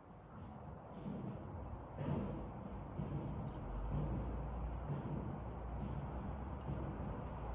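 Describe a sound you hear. Wind blows outdoors and rustles the leaves of tall trees.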